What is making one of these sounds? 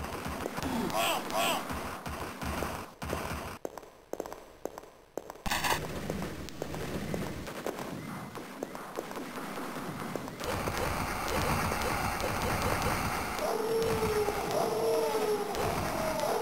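Fireballs burst with a roar.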